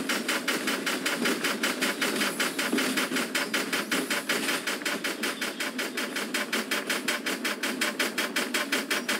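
A steam locomotive chuffs quickly and steadily.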